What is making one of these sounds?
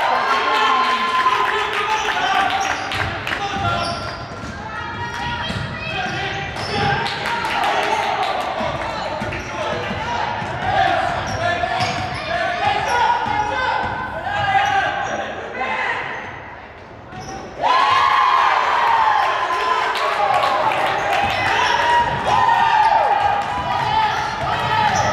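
A basketball bounces with dull thuds.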